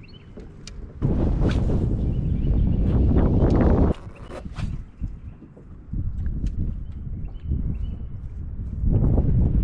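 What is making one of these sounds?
Wind gusts roar across the microphone outdoors.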